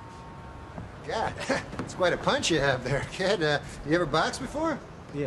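A man talks calmly to a young man, close by.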